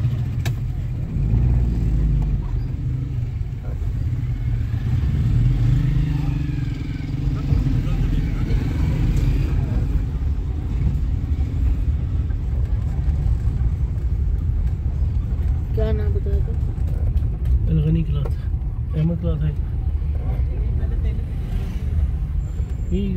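A car's engine and tyres rumble low, heard from inside the car as it rolls slowly.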